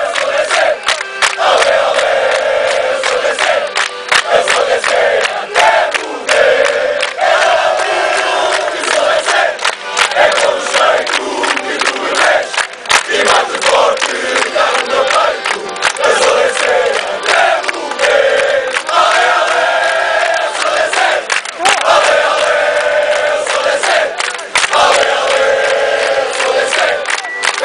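A large crowd of young men sings loudly together outdoors.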